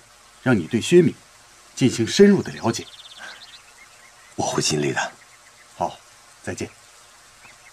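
An elderly man speaks calmly up close.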